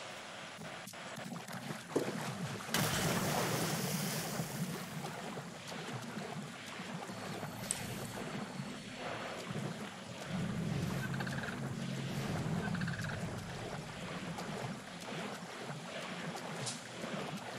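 Water splashes as a person wades.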